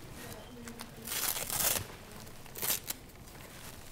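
A hook-and-loop strap rips as it is pulled open and pressed shut.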